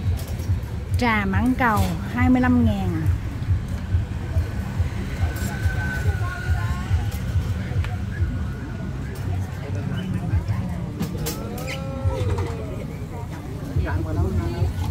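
A crowd of people chatters and talks outdoors.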